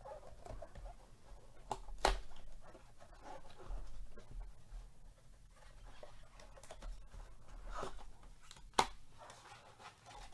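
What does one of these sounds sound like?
A cardboard box is torn open.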